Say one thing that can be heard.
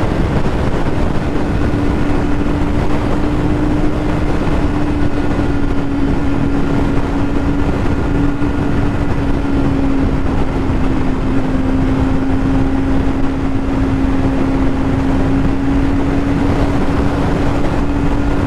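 Traffic roars along a highway nearby.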